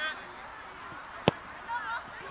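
A football is kicked hard with a sharp thud.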